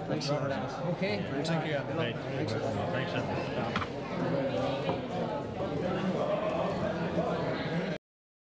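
Several men and women talk over one another in a lively crowd nearby.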